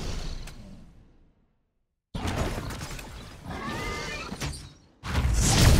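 Video game combat sound effects whoosh and crackle in quick bursts.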